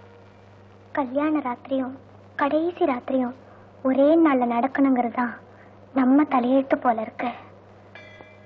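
A young woman sings a slow, mournful song close by.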